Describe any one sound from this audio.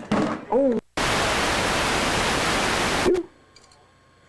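Loud tape static hisses.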